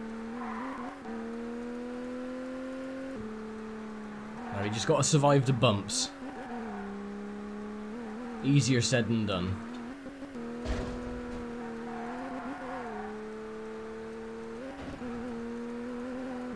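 A racing car engine drones steadily, its pitch shifting with gear changes.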